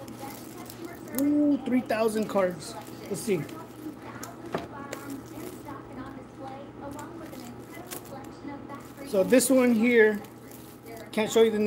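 Plastic film crinkles and rustles in a man's hands.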